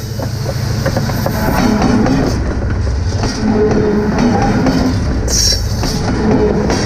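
Train wheels clatter and squeal over the rails close by.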